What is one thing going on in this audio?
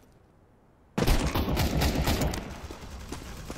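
A rifle fires a loud rapid burst.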